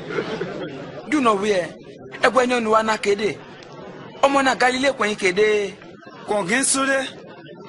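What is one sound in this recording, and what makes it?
A man speaks close by with animation.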